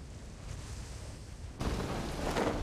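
Wind rushes past during a parachute descent.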